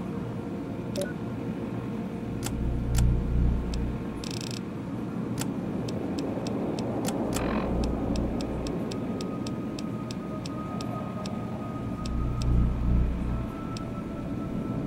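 Short electronic clicks tick again and again, some in quick runs.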